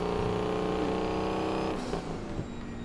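A truck engine roars steadily.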